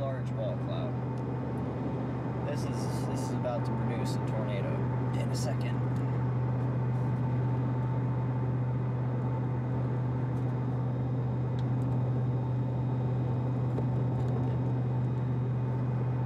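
A car engine and tyres hum steadily on a highway, heard from inside the car.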